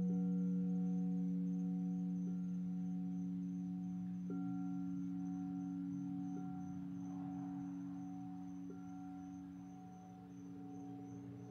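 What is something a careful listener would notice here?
A large gong hums with a deep, steady drone.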